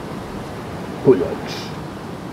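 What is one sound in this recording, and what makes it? An elderly man speaks briefly nearby.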